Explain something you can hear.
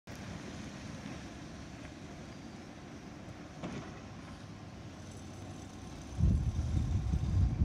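A truck engine rumbles steadily in the distance.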